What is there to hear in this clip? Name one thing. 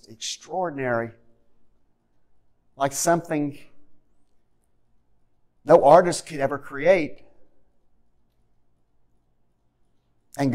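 An older man speaks slowly and deliberately through a microphone, with pauses between phrases.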